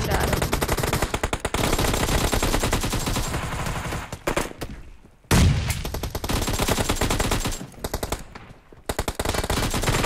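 Rapid gunfire crackles in quick bursts.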